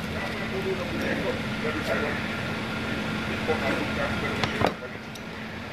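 A knife cuts through soft fruit flesh.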